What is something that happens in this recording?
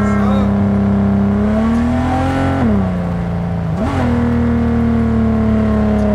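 A car engine roars steadily, its pitch dropping as the gears shift and rising again.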